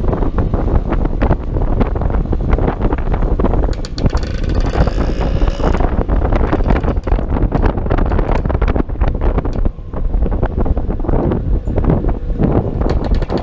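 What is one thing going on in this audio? A scooter engine hums steadily close by.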